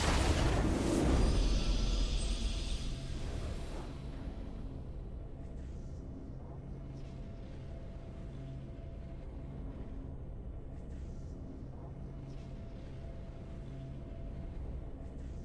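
A triumphant game fanfare swells.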